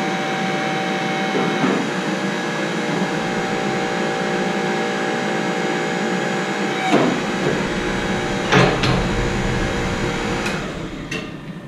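A pipe bending machine hums steadily, then stops.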